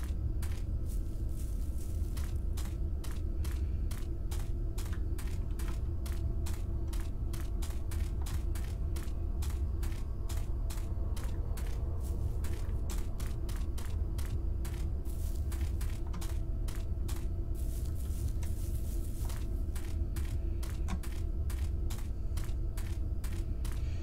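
Footsteps crunch steadily over grass and dirt.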